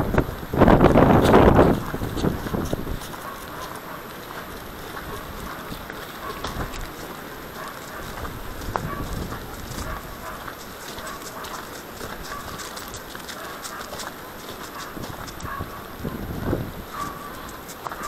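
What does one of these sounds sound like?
Wind buffets a microphone outdoors in gusts.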